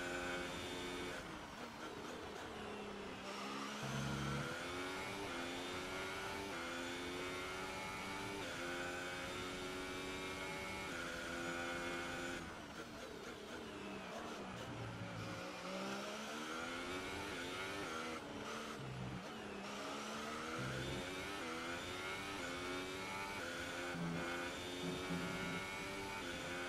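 A racing car engine screams, rising through the gears and dropping as it slows for corners.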